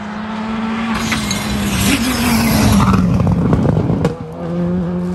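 Tyres hiss and scrabble on the road as a rally car passes.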